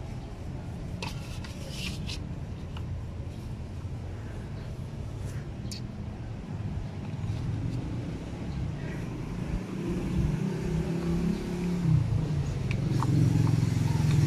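A car engine idles with a steady low rumble.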